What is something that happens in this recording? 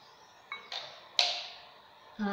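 A glass is set down on a table with a light knock.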